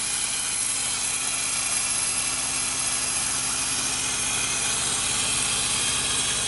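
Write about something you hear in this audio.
A diesel truck engine idles with a steady low rumble.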